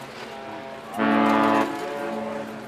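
A large ship's horn blasts once, deep and loud, outdoors over open water.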